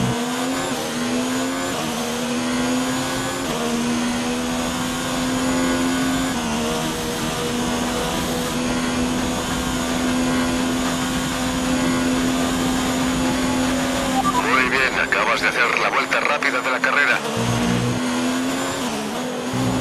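A racing car engine screams at high revs and climbs through the gears.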